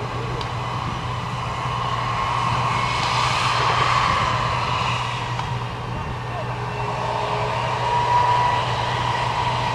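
A tank engine roars steadily as the tank drives across rough ground.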